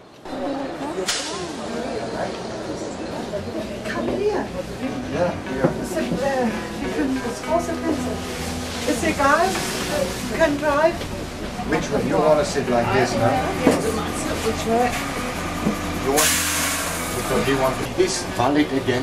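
Several people talk nearby, with voices overlapping.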